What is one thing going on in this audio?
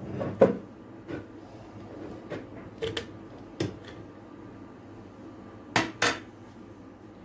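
A metal jar lid clicks and twists open.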